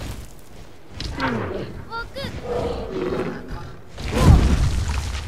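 A large creature flaps its wings with heavy whooshes.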